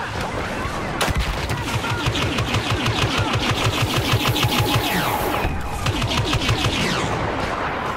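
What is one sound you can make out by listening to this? Blaster guns fire in rapid bursts.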